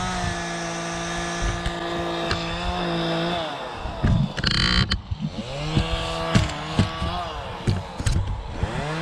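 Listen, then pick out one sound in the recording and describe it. A chainsaw engine runs nearby, its pitch rising and falling.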